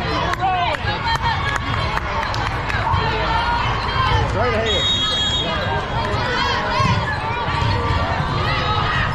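Sneakers squeak sharply on a hard court floor, again and again.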